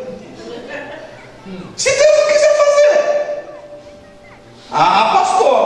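A young man speaks with animation into a microphone over a loudspeaker in an echoing hall.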